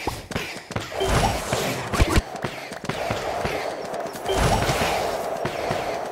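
Bursts of magic whoosh and crackle in the game.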